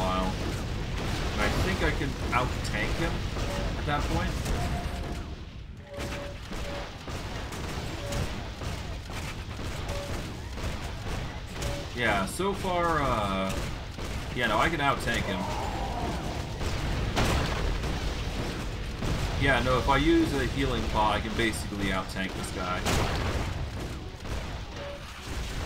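Magic blasts and fiery explosions crackle and boom in a fight.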